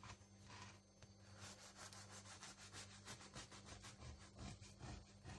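A knife saws through a crusty loaf of bread.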